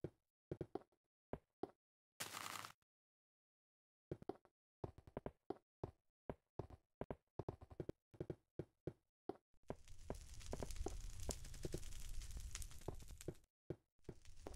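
Footsteps tap on stone in a game.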